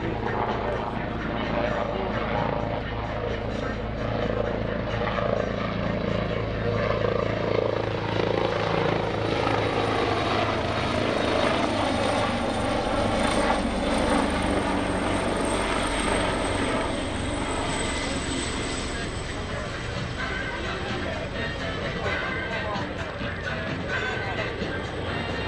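A helicopter flies overhead with its rotor blades thumping steadily, growing louder as it passes and then easing off.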